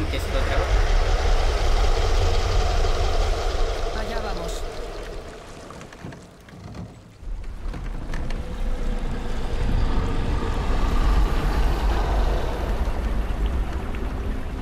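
Water splashes and laps against a small boat.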